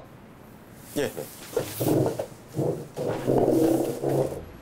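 A man speaks with animation nearby.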